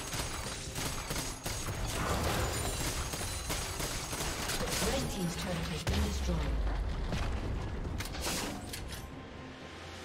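Magic blasts and sword hits crackle and thud in a fast fight.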